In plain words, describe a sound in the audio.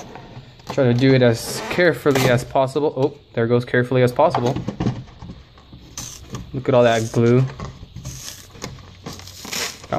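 Cardboard flaps rub and scrape as a box is opened.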